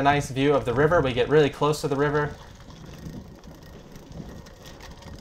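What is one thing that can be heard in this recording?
Bicycle tyres roll over a dirt path.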